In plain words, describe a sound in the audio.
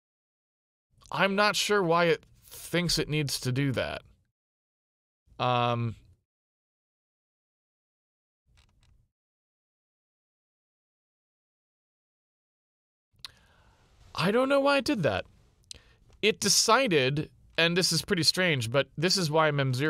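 A man talks calmly into a close microphone, pausing now and then.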